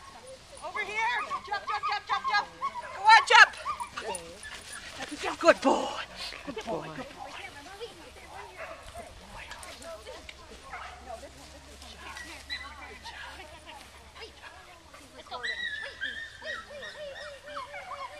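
A woman calls out encouragingly to a dog, outdoors.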